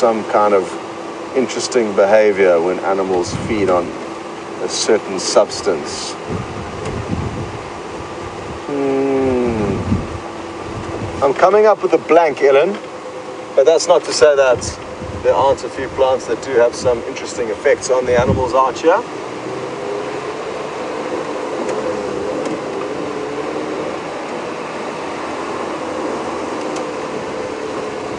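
A vehicle engine hums steadily while driving on a dirt track.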